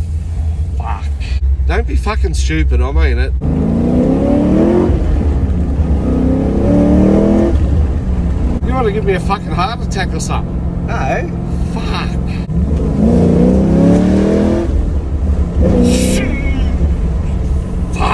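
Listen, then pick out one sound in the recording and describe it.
A low rumble of the car's ride fills the cabin.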